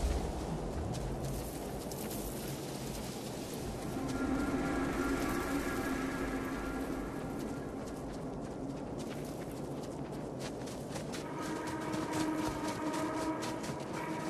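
Heavy footsteps tramp through tall grass.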